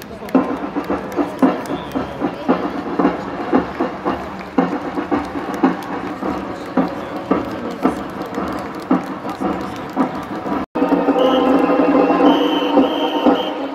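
Many feet march in step on a paved street.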